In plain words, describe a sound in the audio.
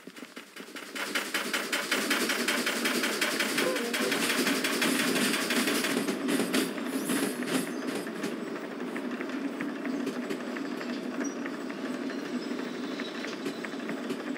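A steam locomotive hisses and rumbles loudly close by.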